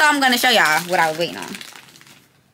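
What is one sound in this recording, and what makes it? A young woman speaks close by in a drawn-out voice.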